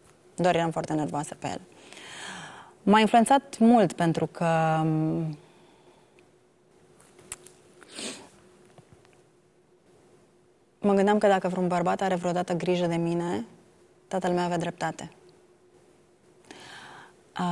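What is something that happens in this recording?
A woman speaks emotionally and haltingly, close to a microphone.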